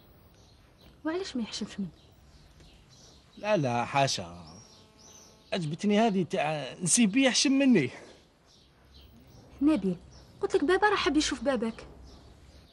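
A young woman speaks earnestly close by.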